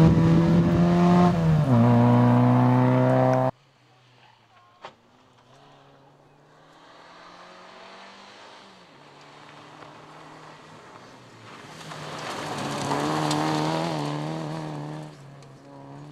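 A rally car engine revs hard and shifts gear as the car speeds along.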